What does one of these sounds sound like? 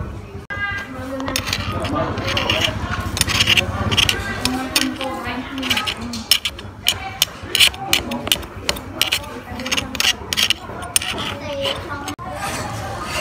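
A metal spoon scrapes and clinks against a grinder plate.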